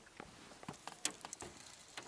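A fishing reel whirs and clicks as line is wound in.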